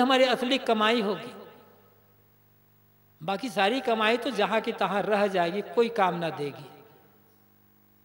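A man chants slowly in a steady voice, with a soft echo.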